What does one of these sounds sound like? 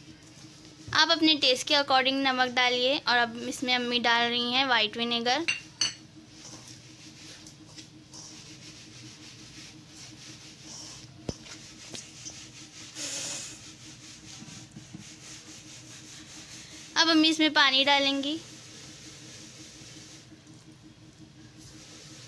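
Hands rub and squeeze dry flour in a metal bowl.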